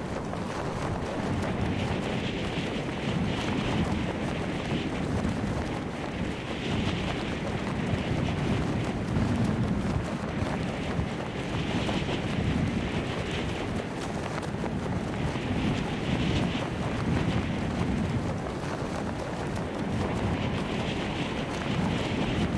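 Wind rushes loudly and steadily past during a fall through the air.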